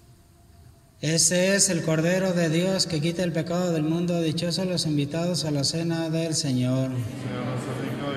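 A man sings through a loudspeaker in a large echoing hall.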